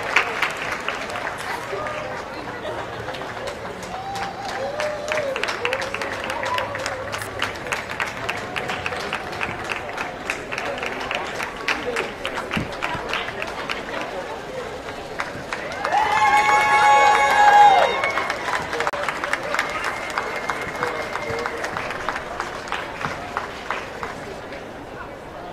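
A crowd of spectators chatters in the background.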